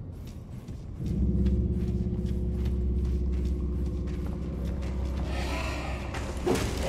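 A low droning hum swells and holds.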